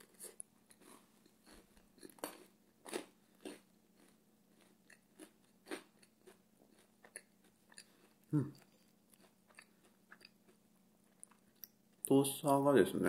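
Crisp toast crackles and crunches up close.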